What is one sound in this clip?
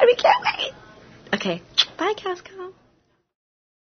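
A young woman speaks cheerfully and excitedly, close up.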